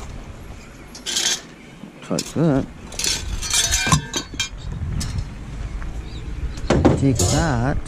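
A metal wire basket rattles and clanks as it is handled.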